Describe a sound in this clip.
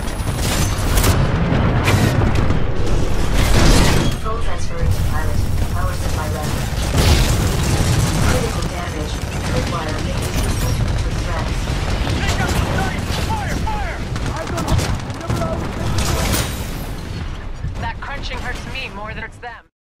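Heavy machine footsteps thud and clank.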